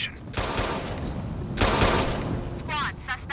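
Gunshots bang loudly in quick bursts.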